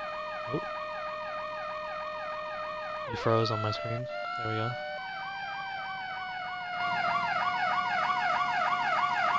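A siren wails up and down steadily, growing louder toward the end.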